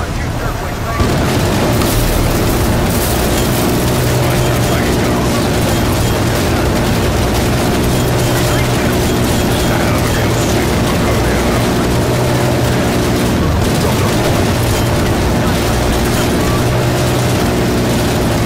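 A heavy rotary gun fires in a fast, continuous roar.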